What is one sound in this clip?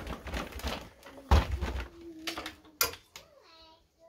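Clothes hangers clatter and scrape on a metal rail.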